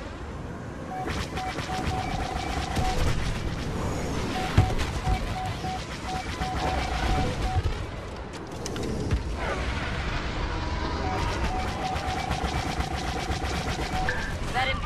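Laser cannons fire in rapid bursts.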